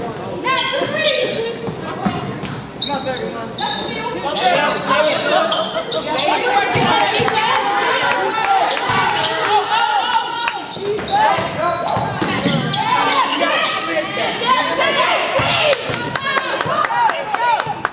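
Sneakers squeak sharply on a wooden court in a large echoing gym.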